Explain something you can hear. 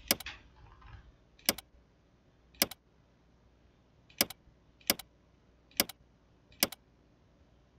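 Short, sharp menu clicks sound every second or so.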